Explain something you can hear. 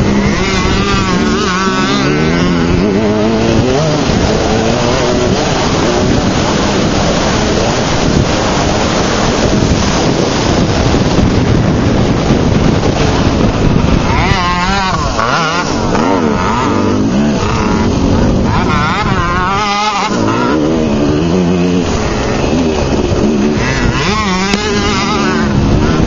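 A small dirt bike engine buzzes loudly close by, revving up and down.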